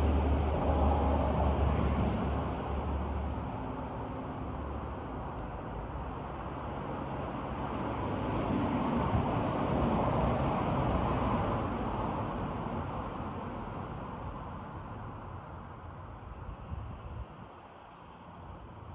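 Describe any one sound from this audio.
Wind rustles through nearby trees, swelling and then slowly fading.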